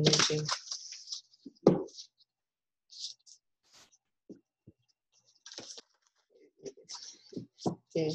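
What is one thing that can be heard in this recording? Cards shuffle and slide in hands.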